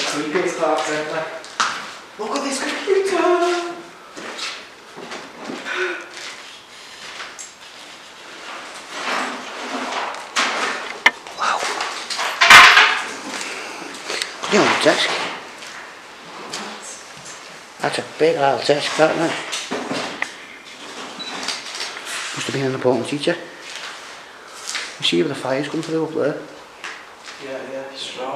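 A young man talks in short bursts close by, in an echoing room.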